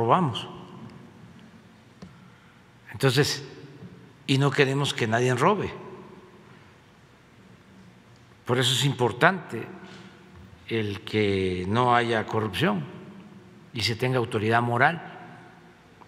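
An elderly man speaks slowly and calmly into a microphone, in an echoing room.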